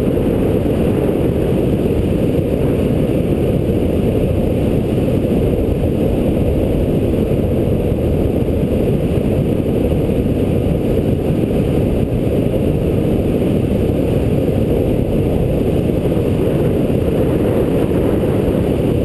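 Wind roars over the microphone of a bicycle speeding downhill.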